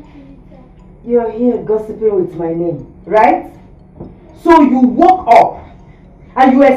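A woman speaks loudly and sternly.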